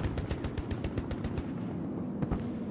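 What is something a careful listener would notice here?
A rifle fires in a rapid burst of shots.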